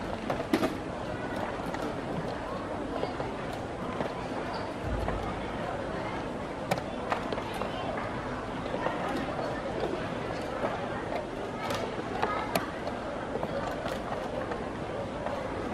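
A chess piece is set down on a wooden board.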